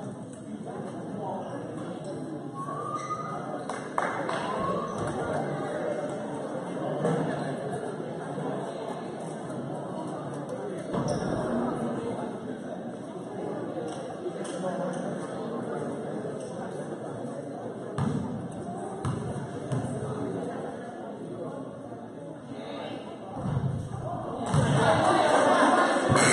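A crowd of spectators murmurs and chatters in a large echoing gym.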